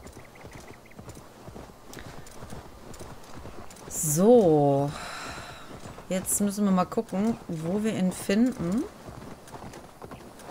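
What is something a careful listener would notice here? Paws thud softly on grassy ground as an animal runs.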